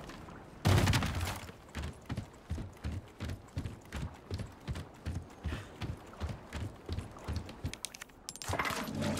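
Footsteps thud on wooden planks at an even pace.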